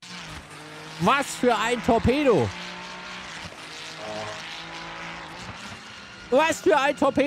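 A man speaks loudly with animation into a close microphone.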